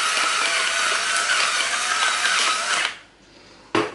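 A pepper mill grinds with a steady gritty crunching.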